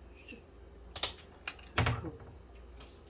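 A cabinet door opens with a knock.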